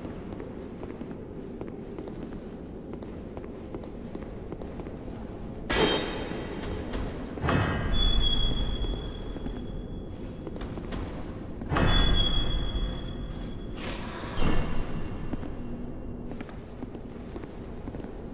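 Armoured footsteps clank on a stone floor.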